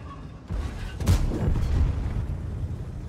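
A shell explodes nearby with a heavy blast.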